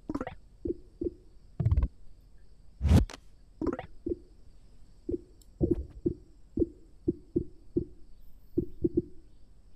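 Short soft clicks sound again and again as menu items are selected.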